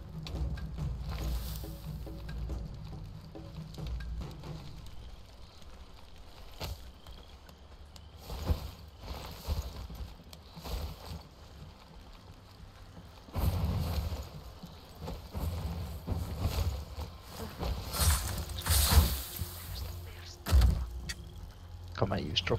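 Tall grass rustles as someone moves through it.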